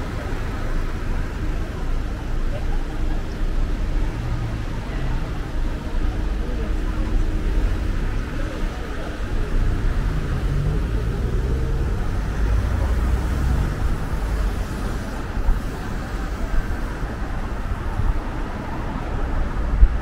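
Car traffic rumbles past on a town street.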